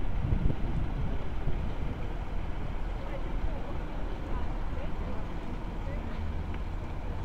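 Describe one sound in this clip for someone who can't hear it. A bus engine idles with a low rumble nearby.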